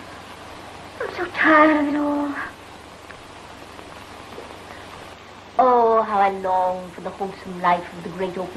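A woman sings in sustained, held notes through an old, hissy recording.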